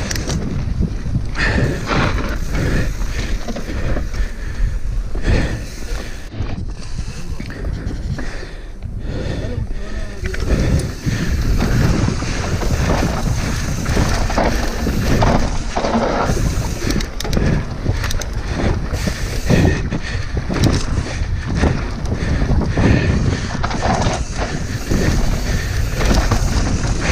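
Bicycle tyres rattle and crunch over a dirt trail.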